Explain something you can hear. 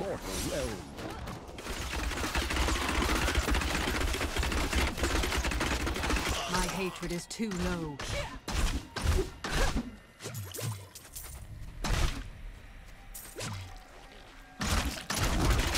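Monsters screech and die in a game.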